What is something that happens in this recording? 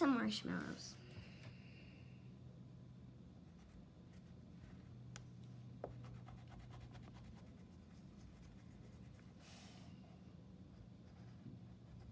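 A crayon scratches softly across paper.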